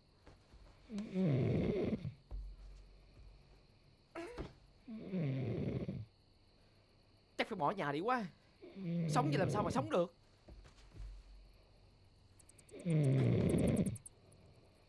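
A young man moans and cries out loudly close by.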